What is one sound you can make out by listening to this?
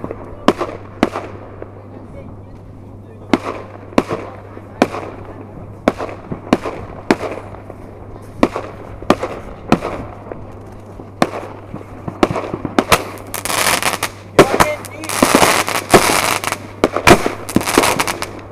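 Fireworks burst with sharp bangs, one after another.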